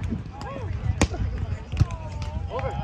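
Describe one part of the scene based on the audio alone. A volleyball is struck with a hand with a sharp slap.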